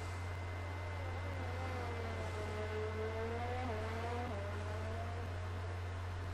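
A Formula One racing car's engine wails at full throttle and shifts up through the gears.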